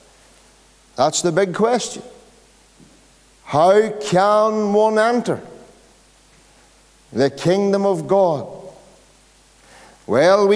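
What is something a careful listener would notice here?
A middle-aged man preaches with emphasis through a microphone in a reverberant hall, pausing between phrases.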